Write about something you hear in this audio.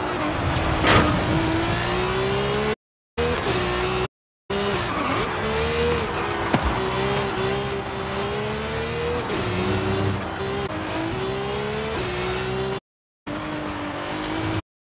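A sports car engine roars at high revs, its pitch rising and falling with gear changes.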